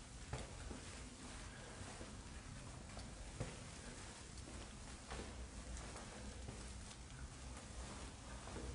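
Footsteps scuff slowly on hard ground.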